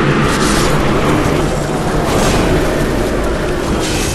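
A magical burst whooshes and swirls.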